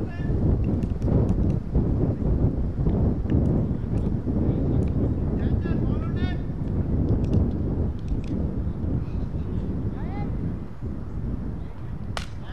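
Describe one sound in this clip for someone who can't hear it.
Wind blows in strong gusts outdoors.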